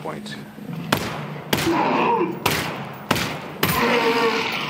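A gun fires single sharp shots.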